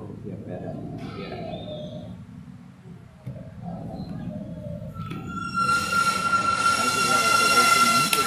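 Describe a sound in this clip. Plastic checkers pieces click on a board.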